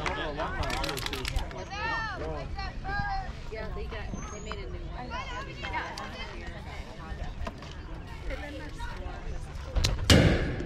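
Young players chatter and call out nearby.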